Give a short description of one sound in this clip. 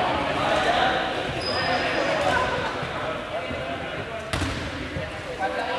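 Players' voices and shouts echo through a large hall.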